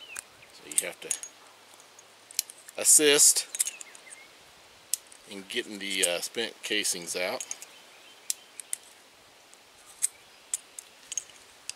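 A revolver's cylinder clicks as it is turned by hand.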